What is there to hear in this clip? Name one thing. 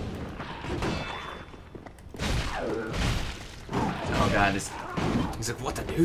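Metal weapons swing and clash in a fight.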